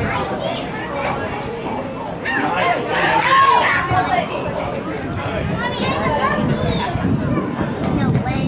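A soccer ball is kicked with a dull thud.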